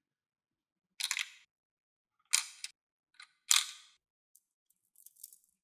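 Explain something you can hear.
Plastic beads clatter and rattle.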